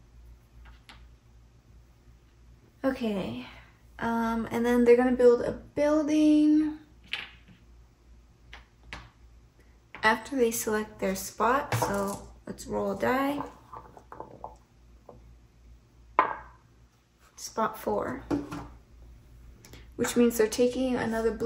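Small game pieces click and clack against a board.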